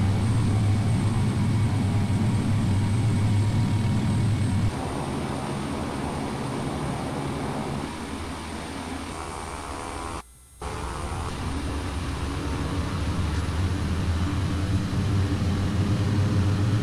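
Propeller aircraft engines drone steadily, briefly cutting out and then growing louder again.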